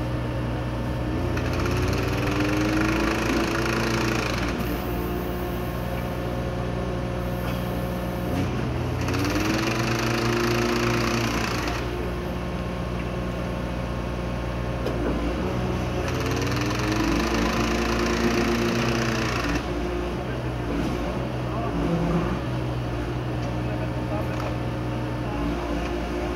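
A large track machine's diesel engine hums steadily outdoors.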